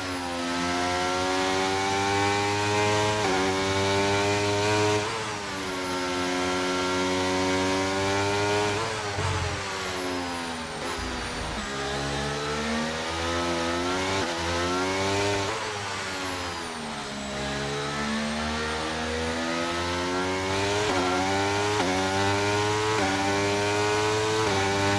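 A racing car engine screams at high revs, rising and dropping as the gears shift.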